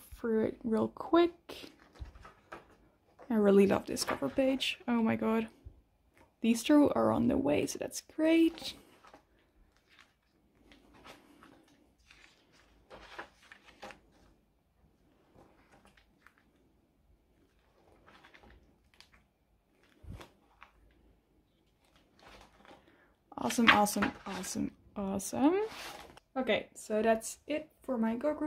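Plastic pages rustle and crinkle as they are turned.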